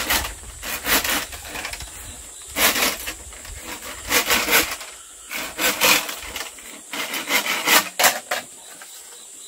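A knife scrapes and shaves along a bamboo pole in quick strokes.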